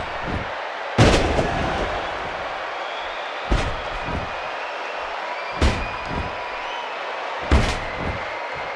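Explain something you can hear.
Bodies slam heavily onto a wrestling ring, again and again.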